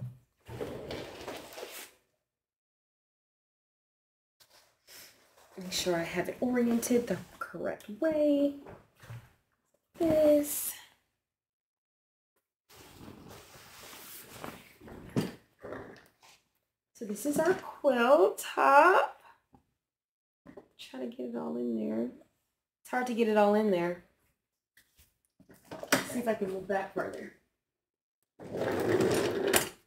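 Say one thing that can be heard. Fabric rustles as a quilt is unfolded and shaken.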